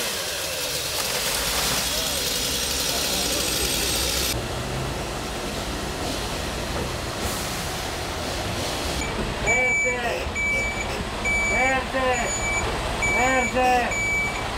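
A fire engine's motor idles with a low rumble nearby.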